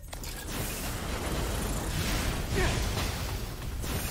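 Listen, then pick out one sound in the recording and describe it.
A fiery explosion booms and roars.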